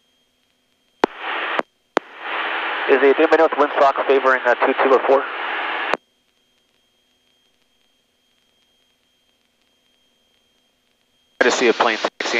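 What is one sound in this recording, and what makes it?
A man speaks briefly over a crackly aircraft radio.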